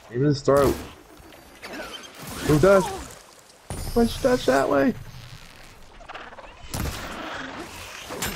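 A bowstring snaps as arrows are loosed.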